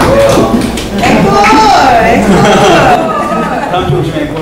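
Young men and women laugh and chatter loudly close by.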